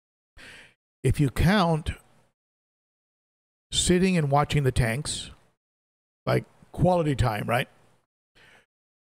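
A middle-aged man speaks calmly and closely into a microphone, in short phrases with pauses.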